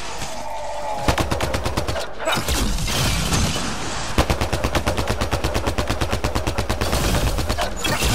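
A sniper rifle fires a loud single shot.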